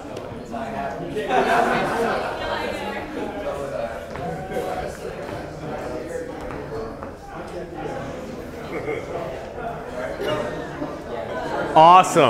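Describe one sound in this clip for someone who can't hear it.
A group of people murmur and talk in a large echoing hall.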